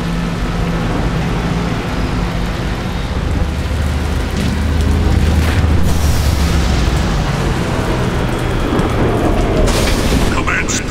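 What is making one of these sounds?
A spaceship's engines roar with a deep, steady rumble.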